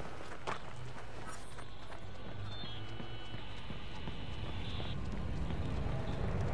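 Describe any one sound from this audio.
Footsteps walk along pavement.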